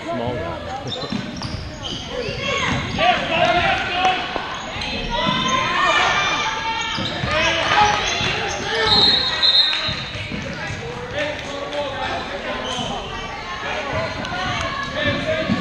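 Spectators chatter and call out in a large echoing gym.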